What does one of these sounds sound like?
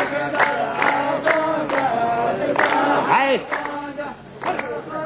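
A group of men clap their hands in rhythm.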